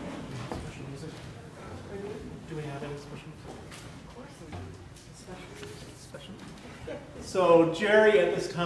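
A man speaks in an echoing hall, his voice rising loudly near the end.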